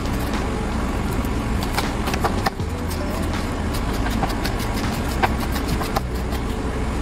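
A knife chops on a cutting board in quick taps.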